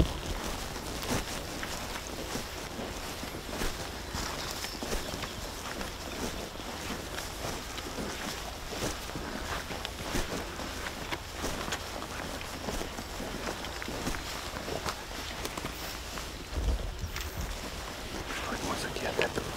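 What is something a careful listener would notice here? Footsteps crunch through soft soil and grass.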